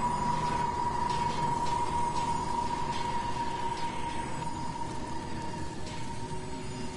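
A metal valve wheel creaks and squeaks as it is turned.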